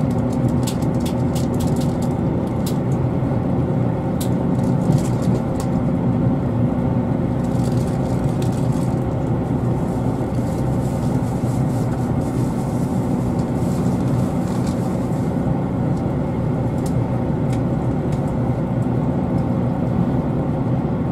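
A vehicle engine hums steadily from inside, with a low rumble of rolling wheels.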